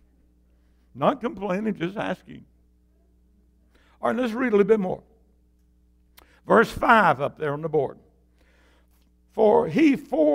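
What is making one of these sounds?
An elderly man preaches with emphasis through a microphone and loudspeakers, pausing between phrases, in a reverberant hall.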